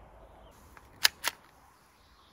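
A pistol's slide clicks as it is racked.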